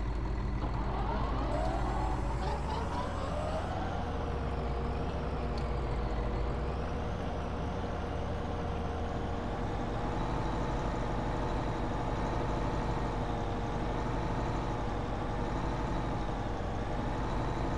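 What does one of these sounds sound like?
A snow blower whirs as it throws snow.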